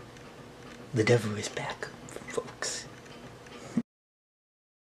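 A young man speaks quietly close by.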